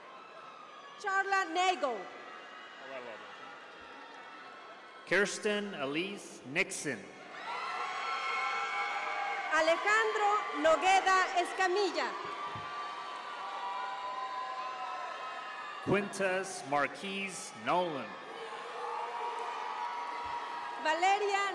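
A crowd cheers and whoops loudly in a large echoing hall.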